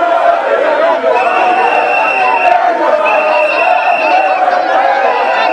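A large crowd sings and chants loudly outdoors.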